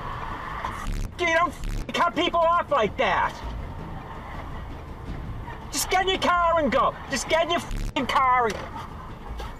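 A woman speaks loudly outside the car.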